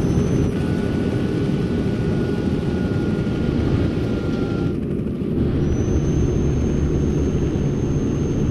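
A truck engine rumbles steadily while driving on a highway.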